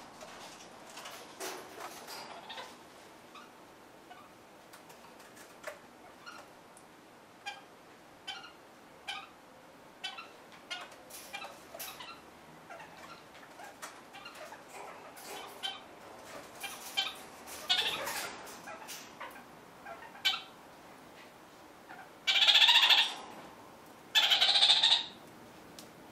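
A parrot nibbles and gnaws at a twig with small dry clicks.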